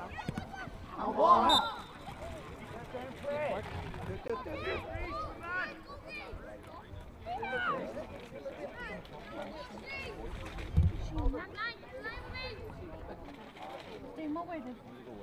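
Young players shout and call to each other across an open outdoor pitch.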